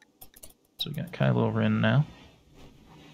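A young man speaks with animation close to a microphone.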